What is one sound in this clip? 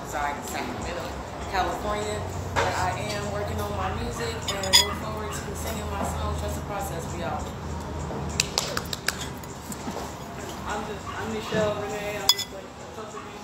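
A woman sings nearby.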